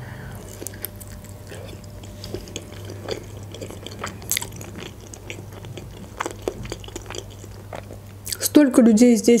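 A young woman chews food with soft, wet crunching sounds close to a microphone.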